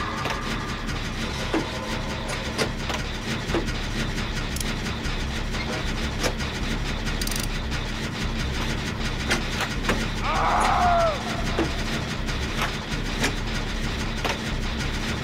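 A machine rattles and clicks.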